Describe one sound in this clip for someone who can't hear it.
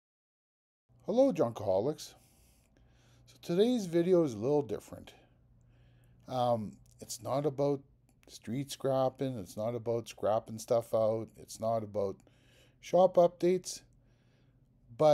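An older man talks calmly and closely into a microphone.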